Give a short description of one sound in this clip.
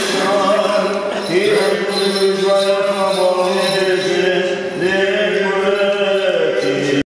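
A man chants in long, sustained tones, echoing in a large hall.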